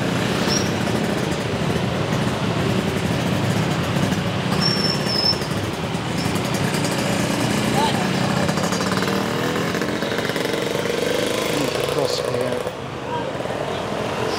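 Motor scooters and cars ride past in dense traffic.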